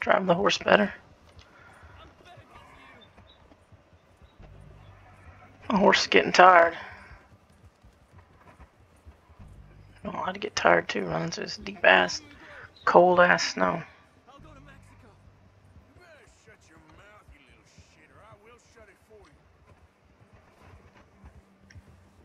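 A horse gallops, hooves thudding on snow.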